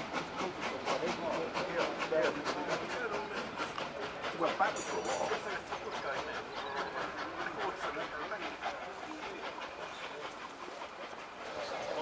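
A steam locomotive chuffs rhythmically in the distance as it approaches.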